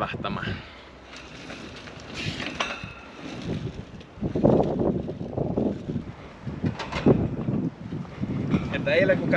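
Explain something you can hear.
Wheelchair wheels roll and rattle over a metal grating.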